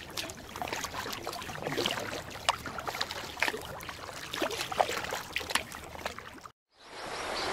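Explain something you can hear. A paddle splashes and dips in the water.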